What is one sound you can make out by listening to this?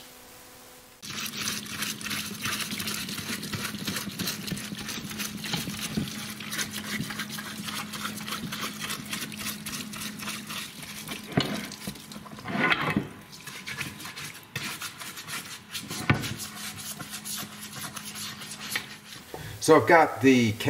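Liquid trickles and splashes over metal parts.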